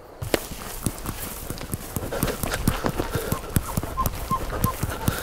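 Footsteps swish and crunch through dry grass.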